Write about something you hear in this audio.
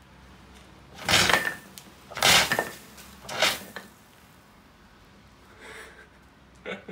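A fire extinguisher sprays with a loud hiss in short bursts.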